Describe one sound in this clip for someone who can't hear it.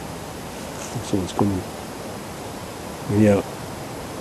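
A man says a few short words close by.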